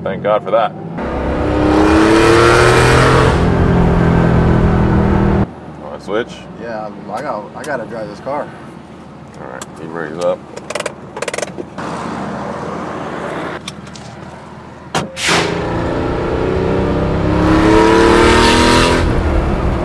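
A sports car engine roars loudly as the car drives past.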